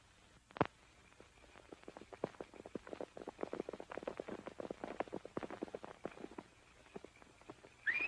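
Horse hooves clatter and stamp on the ground.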